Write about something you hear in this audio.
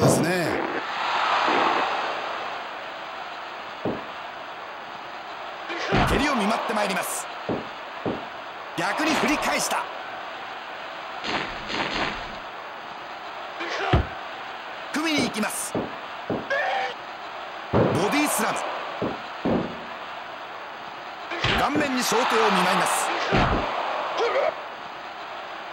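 A crowd cheers and roars in swelling waves.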